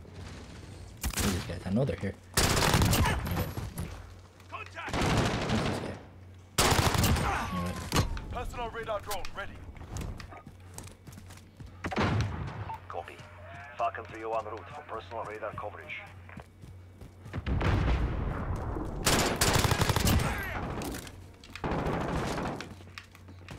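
Rapid gunfire rattles out in loud bursts.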